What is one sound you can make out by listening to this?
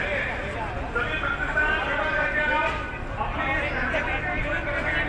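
A crowd of men talk and shout nearby outdoors.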